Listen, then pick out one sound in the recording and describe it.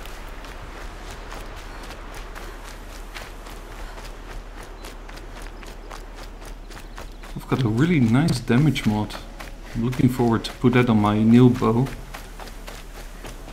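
Quick footsteps patter over grass and dirt.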